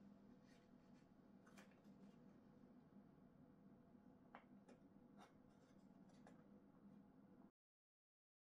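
Small wooden parts click and tap together as hands fit them.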